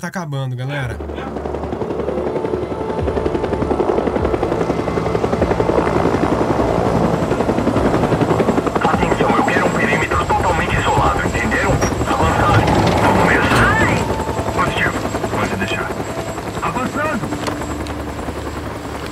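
A helicopter's rotor thrums steadily overhead.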